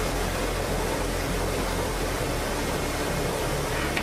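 A metal sieve clinks as it is lifted off a tray.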